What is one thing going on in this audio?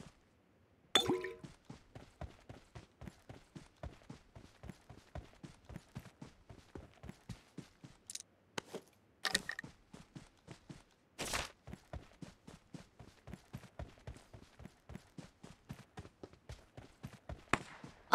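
Footsteps run quickly and steadily over the ground.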